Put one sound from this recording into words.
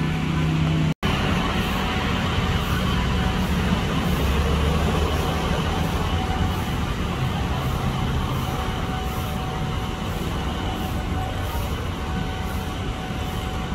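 A train rolls slowly closer along the tracks.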